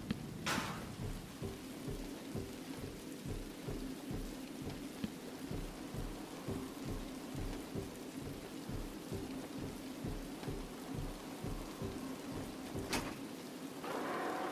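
Heavy footsteps thud steadily along an echoing corridor.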